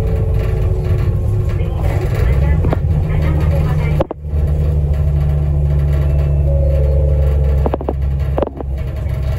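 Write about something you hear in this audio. A vehicle engine hums steadily with road rumble, heard from inside.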